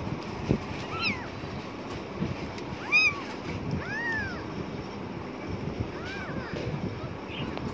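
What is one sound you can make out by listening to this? A tiny kitten mews in high, thin cries.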